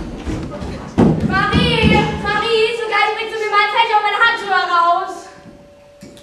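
A young woman sings on a stage.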